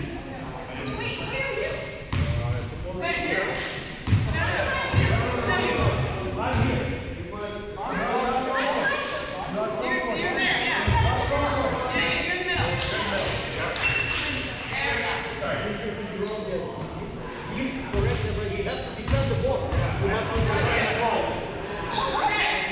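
Young men and women talk and call out across a large echoing gym.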